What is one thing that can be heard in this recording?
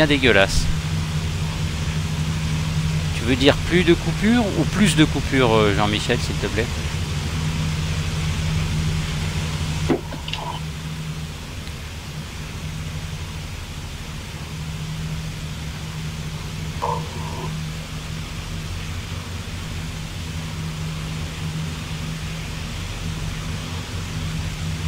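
A propeller aircraft engine drones steadily from inside the cockpit.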